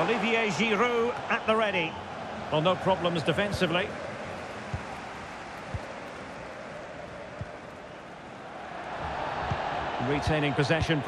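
A stadium crowd murmurs steadily and swells.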